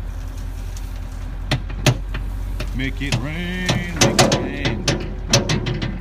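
Wood mulch pours from a loader bucket and rustles into a heap.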